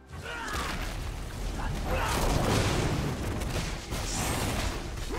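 Video game spell effects whoosh and crackle in a fast fight.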